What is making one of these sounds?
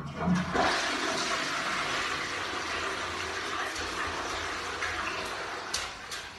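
Water runs and splashes steadily.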